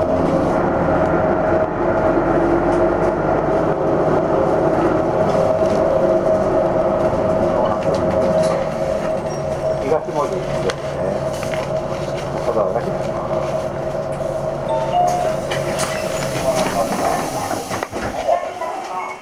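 A vehicle engine hums steadily from inside the cab, then drops away.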